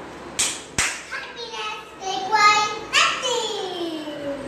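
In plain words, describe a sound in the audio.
A young boy sings loudly and playfully close by.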